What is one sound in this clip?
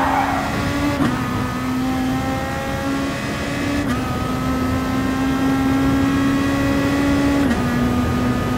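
A racing car shifts gear with a short sharp click and a dip in engine pitch.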